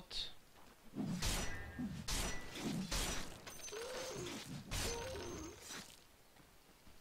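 Game sound effects clash and thud.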